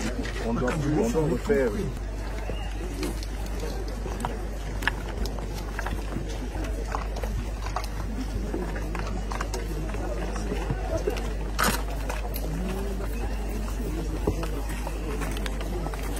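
A crowd of men and women murmur and talk outdoors.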